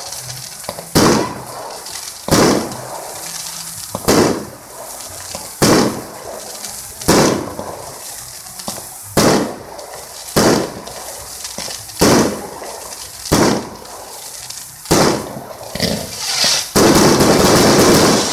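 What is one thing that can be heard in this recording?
Fireworks burst with loud booming bangs at a steady pace.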